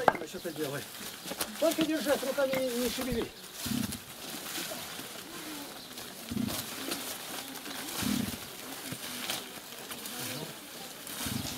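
Dry stalks rustle and crackle as they are handled.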